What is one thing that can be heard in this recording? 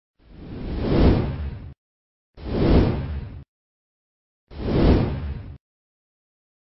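A stadium crowd roars in three short swells.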